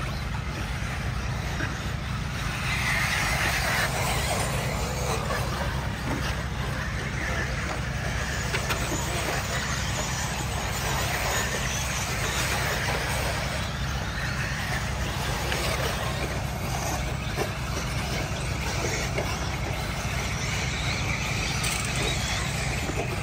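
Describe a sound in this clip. Small electric model cars whine as they race around a dirt track.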